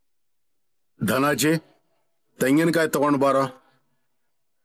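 A man speaks loudly and with feeling, in two short bursts.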